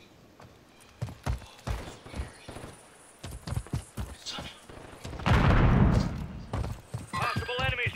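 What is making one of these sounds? Footsteps run over ground.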